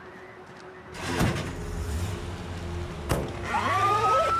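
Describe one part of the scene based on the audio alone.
Ambulance doors bang open.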